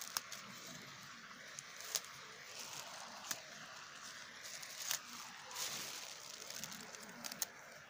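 Dry grass rustles and crackles as a hand pushes through it.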